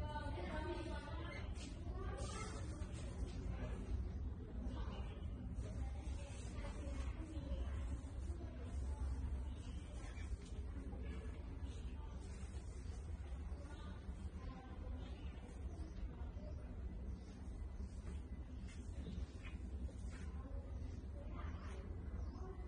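Rats scurry and scratch against glass.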